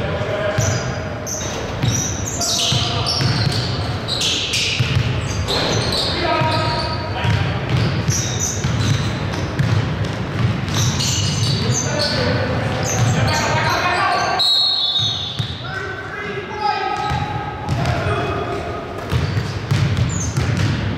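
Men call out and shout to each other across the court.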